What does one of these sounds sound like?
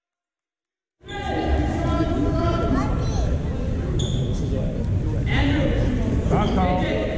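A crowd of spectators chatters nearby.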